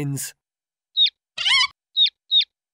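A cartoon hen clucks loudly.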